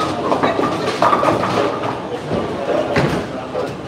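Bowling pins crash and clatter.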